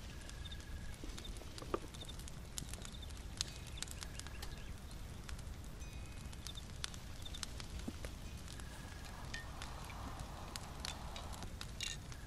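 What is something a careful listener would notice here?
A small flame crackles and pops softly.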